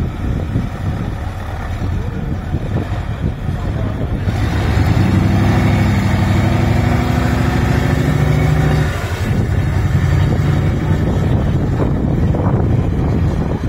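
A heavy truck engine roars close by and revs hard.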